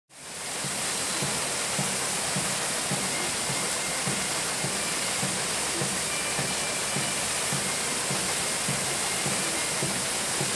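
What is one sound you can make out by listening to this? A paddle wheel thumps in a regular rhythm.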